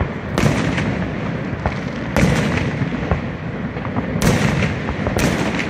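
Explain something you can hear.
Fireworks crackle in the sky.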